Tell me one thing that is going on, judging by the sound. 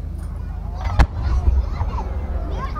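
A firework shell launches from a mortar with a deep thump.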